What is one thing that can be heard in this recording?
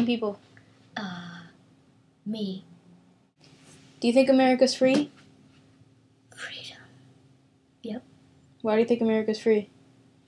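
A teenage girl speaks and sings playfully close by, in short bursts.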